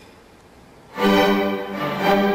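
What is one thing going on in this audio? A string orchestra starts playing together in a large hall.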